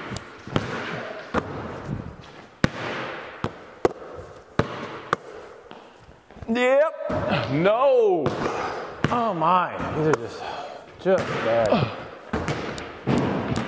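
A basketball bounces sharply on a hard floor in a large echoing hall.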